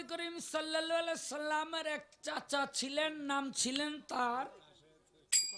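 A middle-aged man sings into a microphone over a loudspeaker.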